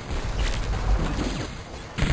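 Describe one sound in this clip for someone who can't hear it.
Guns fire in quick bursts.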